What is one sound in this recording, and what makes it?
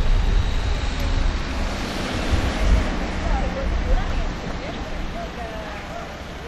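Wind gusts and rumbles against the microphone outdoors.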